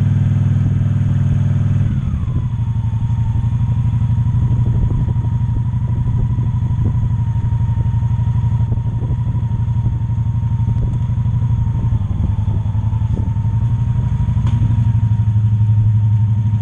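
A motorcycle engine rumbles steadily at low speed, its pitch dropping as it slows.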